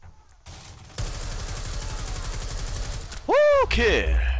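Rapid automatic gunfire rattles in a fast burst.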